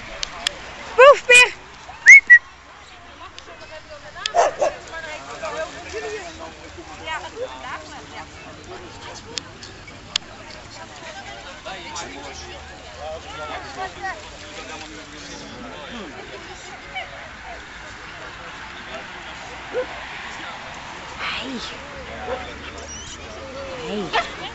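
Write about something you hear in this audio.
Dogs bark and yelp nearby, outdoors.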